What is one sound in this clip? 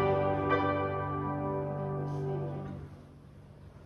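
A small group of people sings together, ending a hymn.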